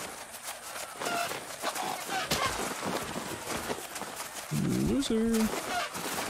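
Wings flap and beat in quick bursts.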